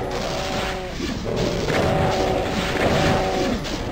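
Monsters growl and screech.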